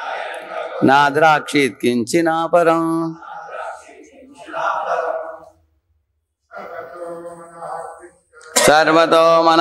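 An elderly man chants verses in a steady, sing-song voice through a microphone.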